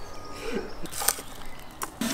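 A knife cuts through a garlic bulb.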